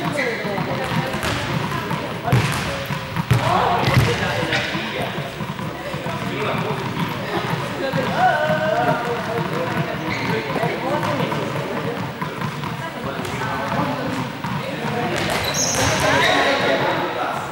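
Balls bounce with hollow thuds on a hard floor.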